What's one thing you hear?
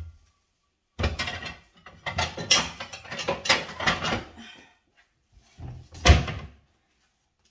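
Cupboard doors and dishes knock and clatter.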